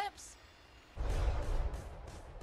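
A magic spell bursts with a loud, rushing roar.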